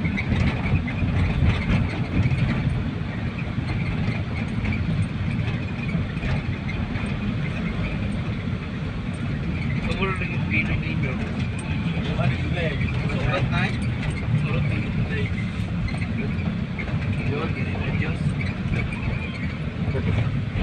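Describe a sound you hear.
Traffic rumbles along the road outside.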